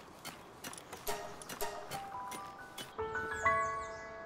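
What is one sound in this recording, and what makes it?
Soft chime tones ring out in a rising run.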